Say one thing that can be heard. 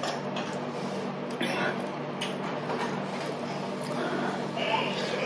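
A young woman chews food wetly and crunchily close to a microphone.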